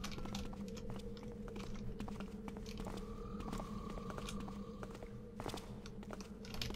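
Footsteps tread steadily on cobblestones.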